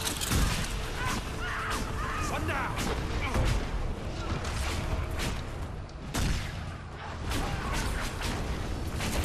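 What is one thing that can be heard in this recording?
Magic spells burst and crackle in quick succession.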